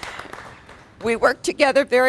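A woman speaks cheerfully into a microphone.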